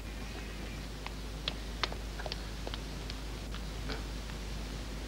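Footsteps tap on stone steps outdoors.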